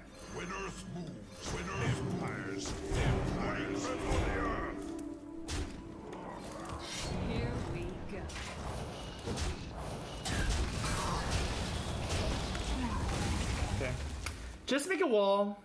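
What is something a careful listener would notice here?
Chiming, crackling game sound effects play.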